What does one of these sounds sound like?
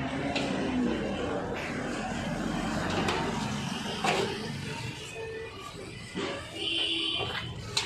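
A metal shutter rattles and clanks as it is pried and bent.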